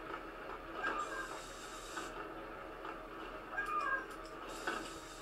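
An explosion bursts with a fiery roar.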